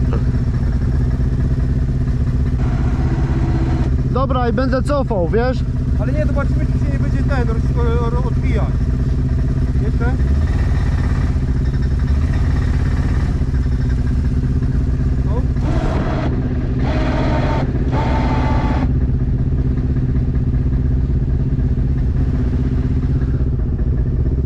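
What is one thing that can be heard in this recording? An engine idles with a steady low rumble close by.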